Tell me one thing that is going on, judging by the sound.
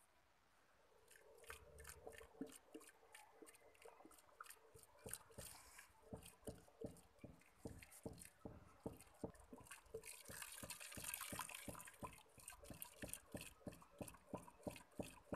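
A wooden pestle pounds rhythmically inside a metal pot.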